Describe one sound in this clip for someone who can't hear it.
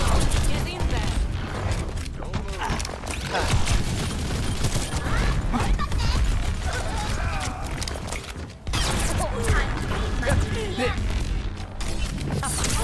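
A weapon in a video game fires bursts of shots.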